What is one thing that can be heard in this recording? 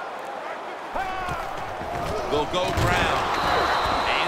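A stadium crowd roars louder as a play begins.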